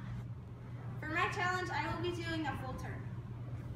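A young girl speaks brightly, close by.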